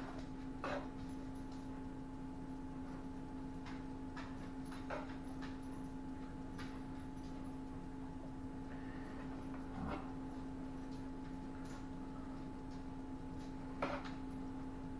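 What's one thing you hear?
A metal spoon scrapes and clinks against a baking tray.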